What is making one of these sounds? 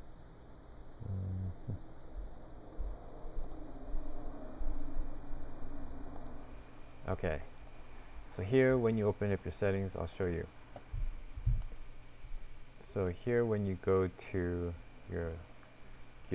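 A young man speaks calmly into a close microphone.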